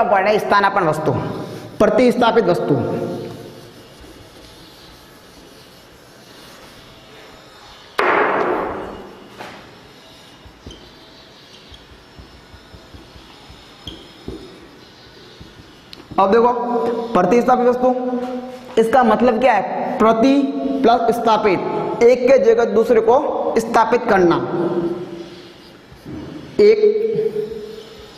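A young man speaks with animation, close by, in a lightly echoing room.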